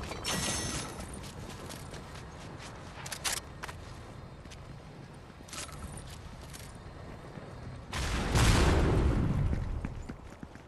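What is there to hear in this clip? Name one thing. Quick footsteps run over snow and hard ground.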